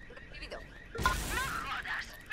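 A heavy blow lands with a loud thud.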